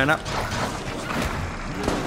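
Gunfire and explosions crackle from a video game.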